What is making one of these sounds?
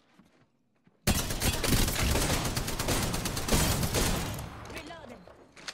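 Rapid gunfire rattles loudly in a burst.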